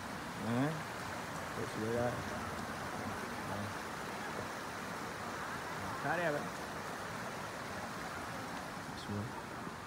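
A stream rushes and splashes over rocks.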